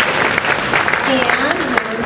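A girl speaks into a microphone.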